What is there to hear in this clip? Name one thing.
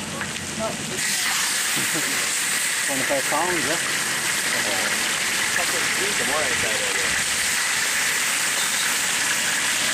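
Meat drops into hot oil and sizzles loudly.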